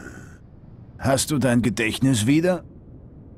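A man speaks in a deep, gruff voice.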